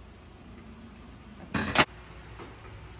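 A blade snips through a cord with a sharp click.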